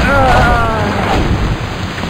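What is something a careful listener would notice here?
An explosion bursts with a loud crackle.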